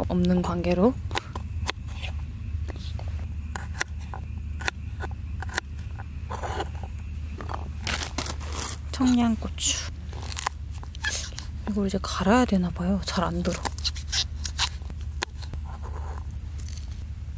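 A knife taps and chops on a wooden board.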